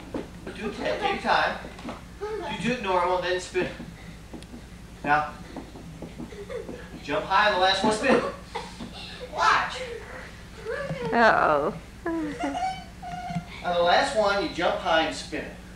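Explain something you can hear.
A young girl talks.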